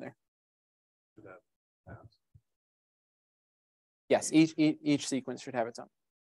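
A man lectures calmly through a microphone, with pauses.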